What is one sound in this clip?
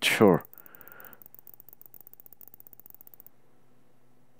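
Soft electronic clicks tick rapidly as menu items scroll past.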